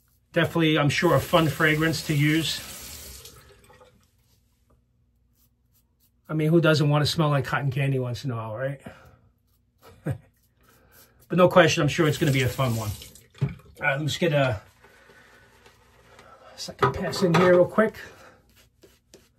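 A man talks calmly and close up.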